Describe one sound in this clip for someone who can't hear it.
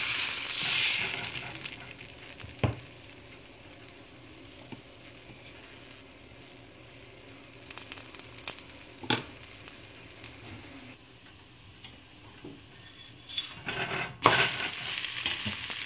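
Batter sizzles softly on a hot griddle.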